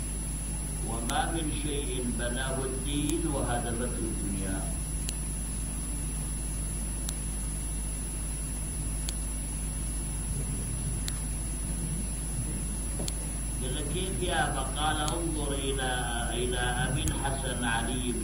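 A middle-aged man preaches with emotion into a microphone.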